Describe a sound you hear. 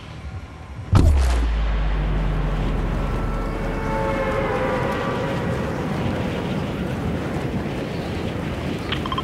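Air rushes loudly and steadily past a skydiver in free fall.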